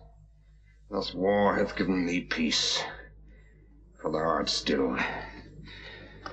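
A man groans and cries out with strain close by.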